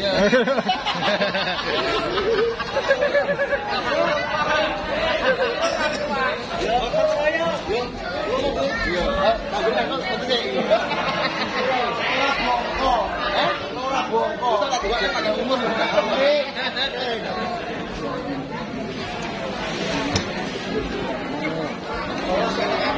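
A crowd of men, women and children chatters and calls out loudly all around.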